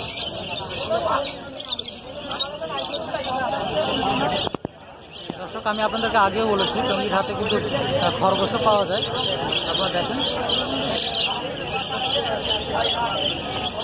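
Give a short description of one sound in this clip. Many small parrots chirp and squawk loudly and continuously.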